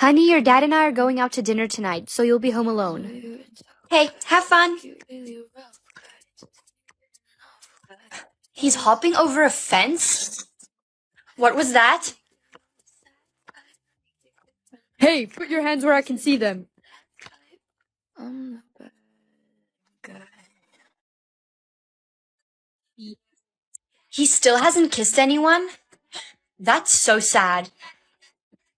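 A young woman speaks with animation in several character voices, close to a microphone.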